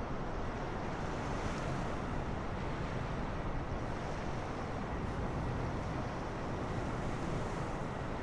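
Jet engines roar steadily close by.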